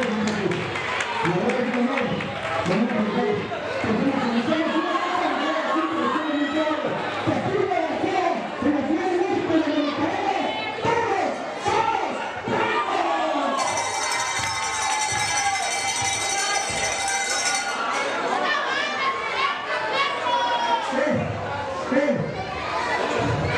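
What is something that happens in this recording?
A crowd shouts and cheers in a large echoing hall.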